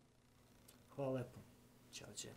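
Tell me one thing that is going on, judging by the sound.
A man speaks briefly and quietly, close by.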